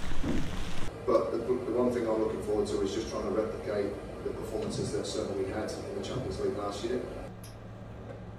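A man speaks calmly into a microphone in a room.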